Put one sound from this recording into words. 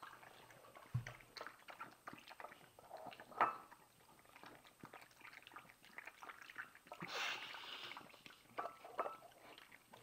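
A dog's snout clinks against a bowl.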